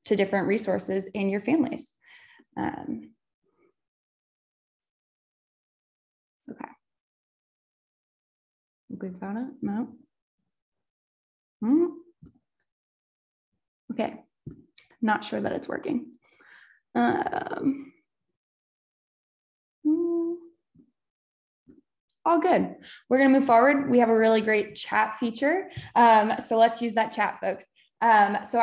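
A young woman speaks calmly into a microphone over an online call, with pauses.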